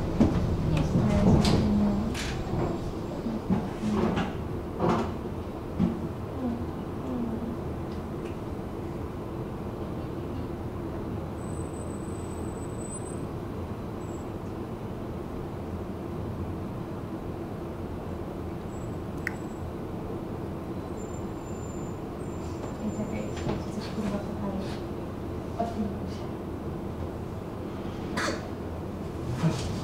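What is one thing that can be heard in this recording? Traffic rumbles steadily past on a nearby road.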